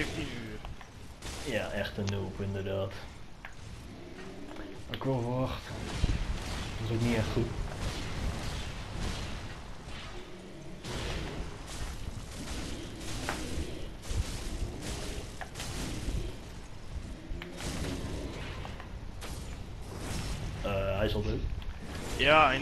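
Heavy blows clash and thud again and again.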